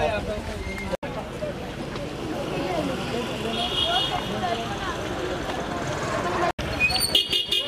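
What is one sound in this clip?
A crowd of men talks and murmurs outdoors.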